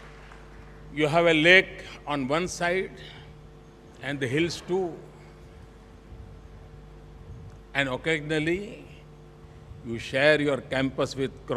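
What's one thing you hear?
An older man speaks with animation into a microphone.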